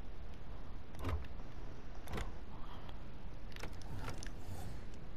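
Soft menu clicks sound as selections change.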